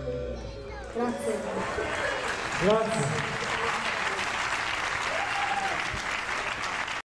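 An audience cheers and applauds loudly in a large hall.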